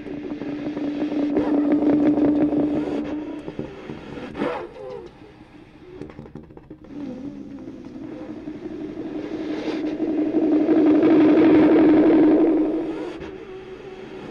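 Bass saxophones play long, low, swelling notes up close.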